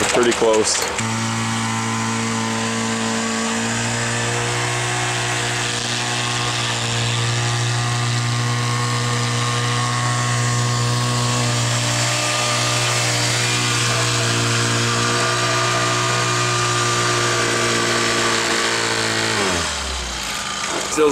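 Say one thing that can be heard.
A small engine hums steadily close by and then winds down.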